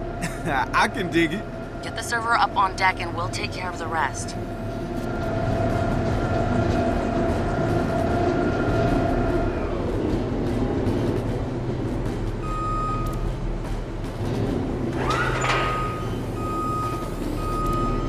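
A machine's motor hums steadily as it drives and turns.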